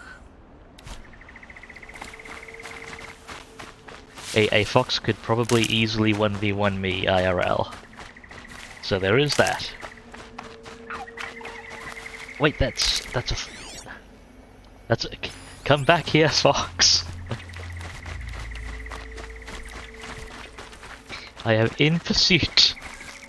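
Footsteps rustle through leaves and undergrowth.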